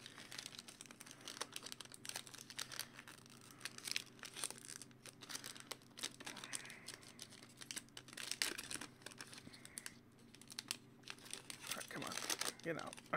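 Foil wrappers crinkle and rustle as hands tear them open.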